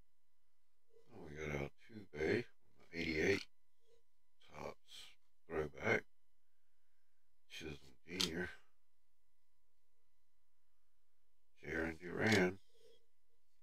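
An elderly man speaks calmly into a microphone in short bursts.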